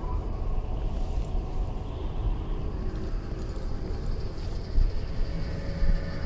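A deep, rumbling magical drone hums steadily.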